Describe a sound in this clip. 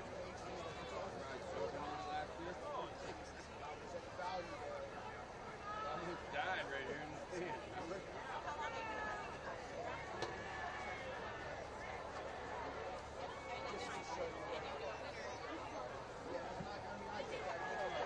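A large crowd chatters and calls out from the stands outdoors.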